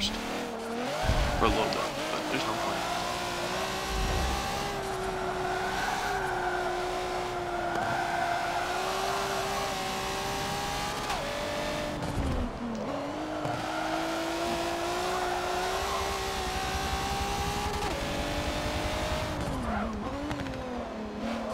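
A car engine roars at high revs, rising and falling with gear shifts.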